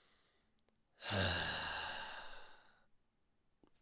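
A man sighs heavily.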